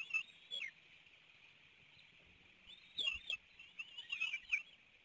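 Birds chirp in short, high bursts outdoors.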